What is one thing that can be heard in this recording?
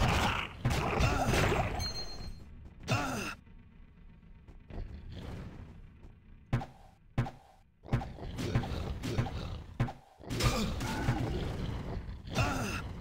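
Weapon blows strike with sharp thuds.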